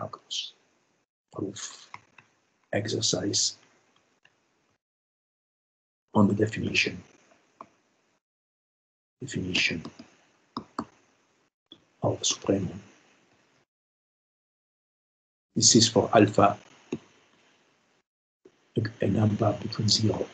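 A man explains calmly, in short phrases with pauses, heard through an online call.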